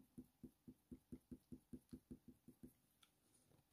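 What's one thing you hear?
A pencil scratches on paper in quick, even strokes.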